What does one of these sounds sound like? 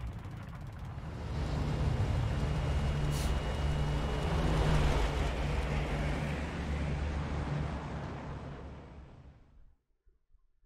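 A plane's engines roar loudly.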